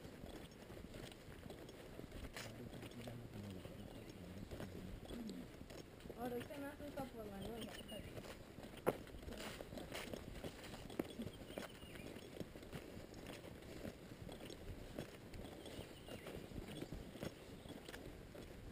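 Footsteps crunch steadily on a grassy dirt track.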